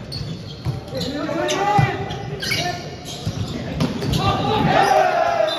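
Players shout and call out in a large echoing hall.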